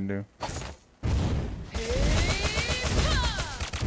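Magic spells whoosh and crackle in a fast battle in a video game.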